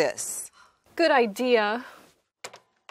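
A middle-aged woman speaks calmly.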